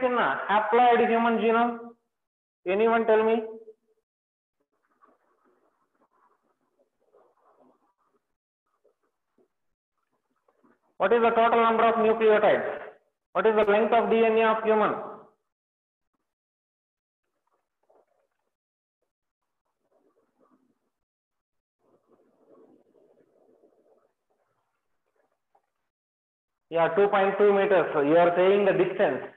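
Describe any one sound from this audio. A man speaks calmly and clearly close to a microphone, with long pauses.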